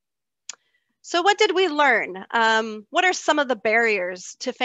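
A woman speaks calmly over an online call.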